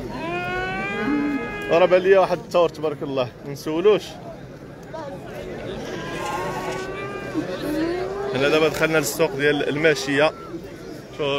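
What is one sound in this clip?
A man nearby speaks loudly.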